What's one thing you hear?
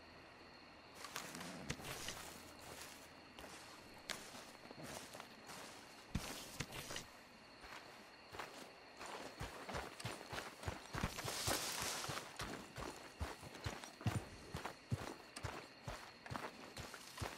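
Footsteps crunch through grass and dirt.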